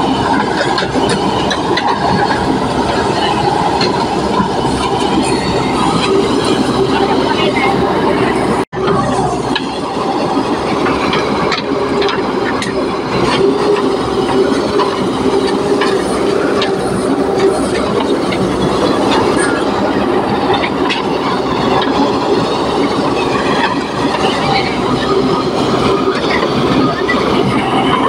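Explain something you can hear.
A diesel engine rumbles steadily.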